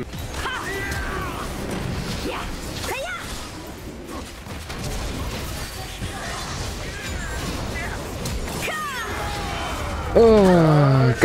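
Game spells crackle and burst in a fast battle.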